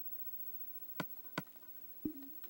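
Soft clicks sound as items are moved in a game menu.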